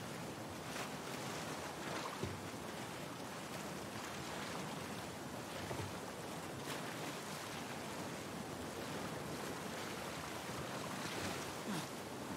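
A wooden crate bumps and scrapes through water.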